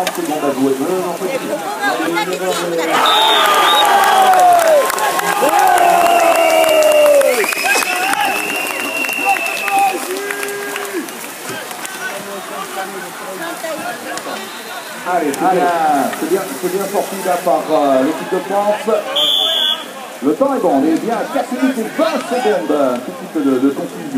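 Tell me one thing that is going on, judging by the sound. Paddles splash in the water.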